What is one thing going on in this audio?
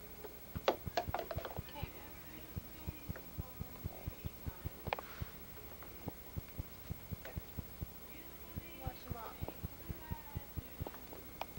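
A woman talks softly to a baby close by.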